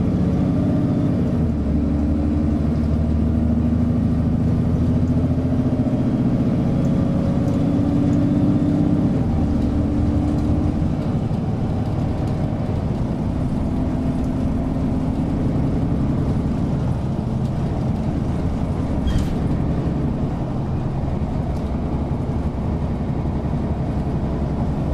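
A bus engine hums and whines steadily as the bus rolls along.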